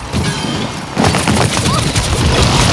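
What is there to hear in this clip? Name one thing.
Laser pistols fire rapid electronic shots.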